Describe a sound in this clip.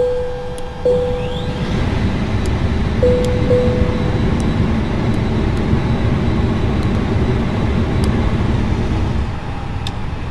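Cooling fans whir steadily, then die down.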